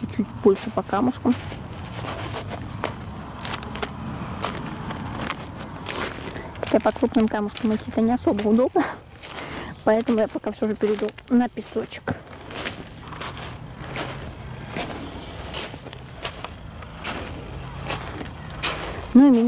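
Footsteps crunch on loose pebbles.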